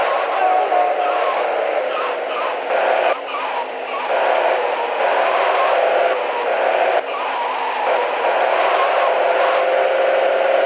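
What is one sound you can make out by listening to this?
A car engine hums steadily as a car drives along.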